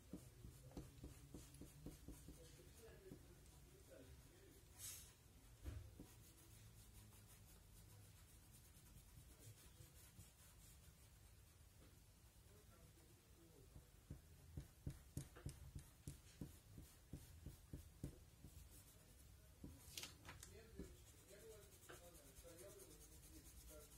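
A pencil scratches and taps softly on paper.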